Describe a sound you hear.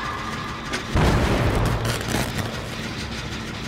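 An engine bangs and sputters with a sudden loud burst.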